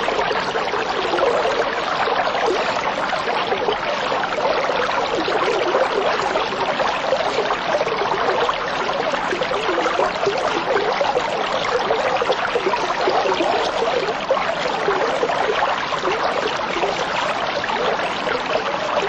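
Water bubbles and gurgles steadily from an aquarium filter.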